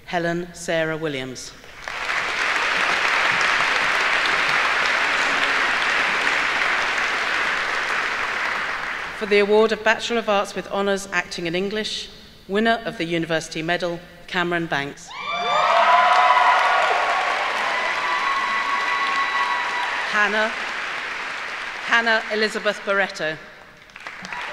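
A middle-aged woman reads out names through a microphone in a large hall.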